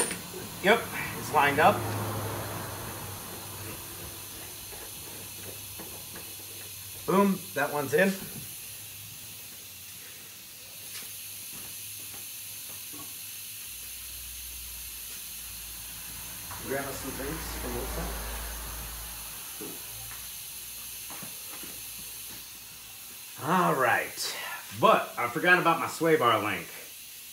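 A man speaks casually in short bursts, close by.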